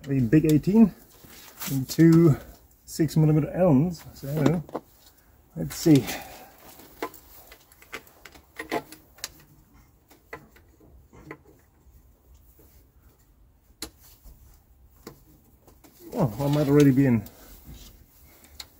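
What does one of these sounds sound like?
Metal tools click and clink against an engine.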